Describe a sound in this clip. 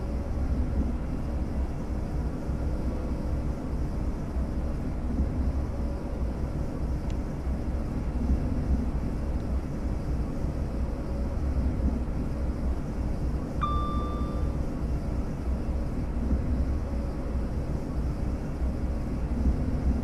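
A train's electric motor hums and rumbles steadily as it runs along the track.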